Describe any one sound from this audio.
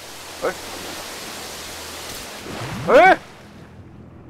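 Water rushes and roars loudly.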